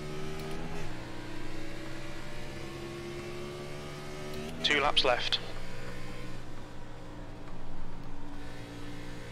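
A racing car engine drones steadily and drops in pitch as it shifts gears.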